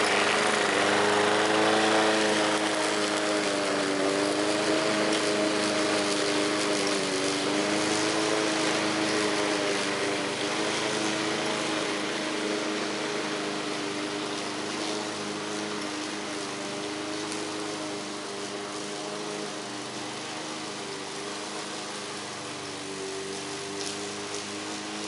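A petrol lawn mower engine drones steadily, slowly fading as it moves away.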